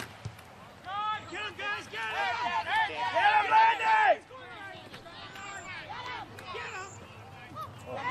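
Young spectators shout and cheer excitedly close by.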